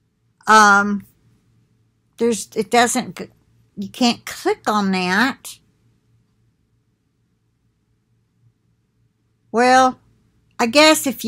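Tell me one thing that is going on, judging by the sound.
A middle-aged woman talks expressively, close to a microphone, with pauses between phrases.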